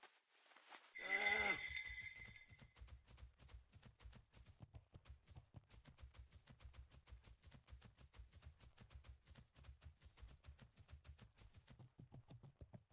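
Footsteps patter quickly on soft ground.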